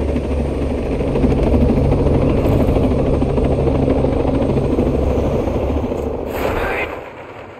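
A helicopter's rotor thumps loudly and steadily.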